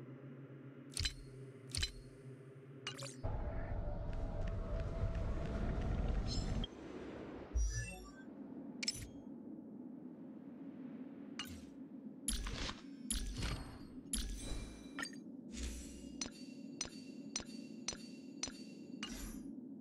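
Game menu buttons click sharply, several times.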